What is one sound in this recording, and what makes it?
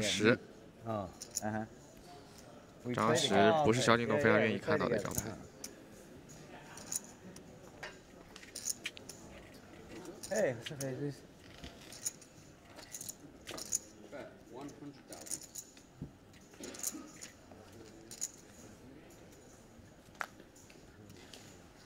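Poker chips click together as a player handles them.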